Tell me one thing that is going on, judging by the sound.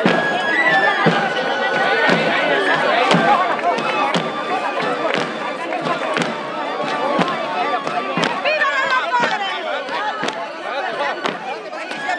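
Drums beat steadily in the distance.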